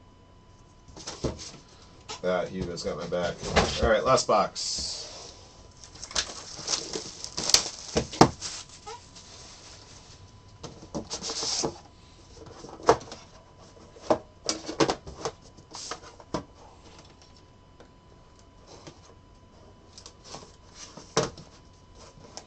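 Hands slide and tap a cardboard box.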